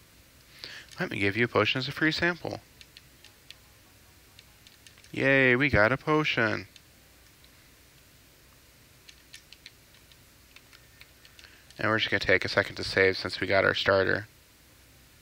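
A young man talks calmly and close into a microphone.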